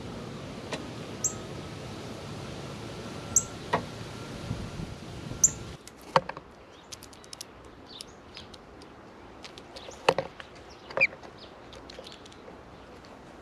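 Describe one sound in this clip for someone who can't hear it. Birds peck and crack seeds with sharp clicks.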